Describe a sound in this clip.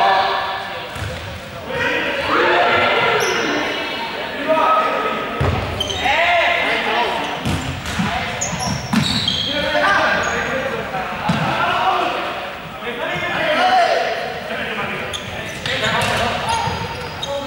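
A ball thuds on the floor.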